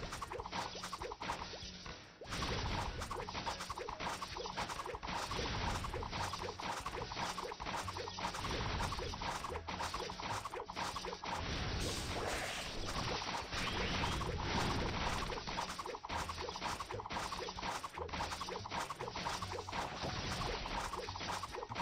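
Rapid game attack effects crackle and zap over and over.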